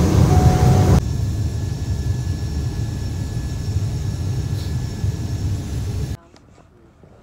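A single-engine turboprop plane taxis with a lower hum.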